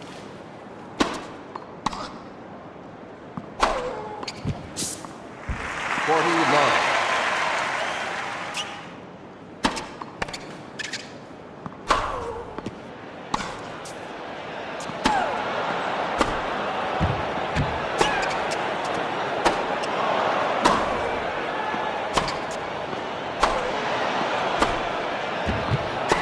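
A tennis ball is struck hard with a racket, again and again.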